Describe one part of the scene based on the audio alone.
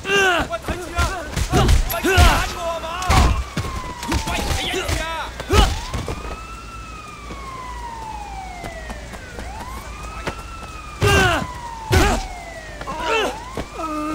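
A man grunts and cries out in pain.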